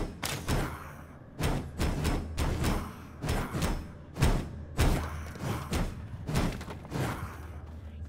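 A pickaxe strikes rock again and again.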